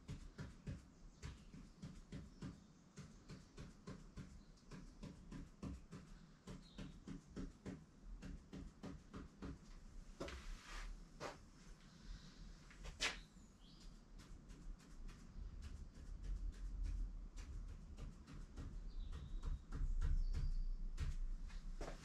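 A pen taps and scratches quickly against a hard board in short strokes.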